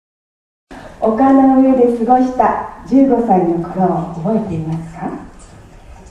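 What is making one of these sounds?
A group of women sing together.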